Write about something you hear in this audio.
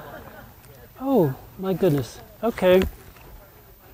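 An elderly man speaks in short, lively bursts nearby.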